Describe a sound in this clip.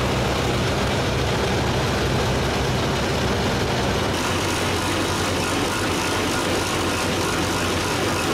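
A combine harvester runs with its engine and machinery droning.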